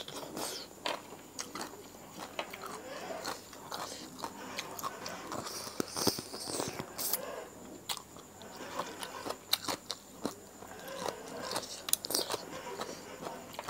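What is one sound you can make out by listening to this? Crisp vegetables crunch and rustle as hands pick through them.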